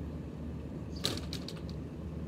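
A door swings shut and latches with a sharp click.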